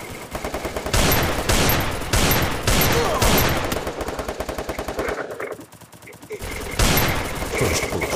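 Pistol shots fire in quick bursts.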